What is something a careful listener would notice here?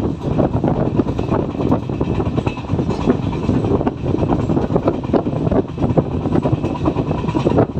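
A train rumbles and clatters steadily over the rails at speed.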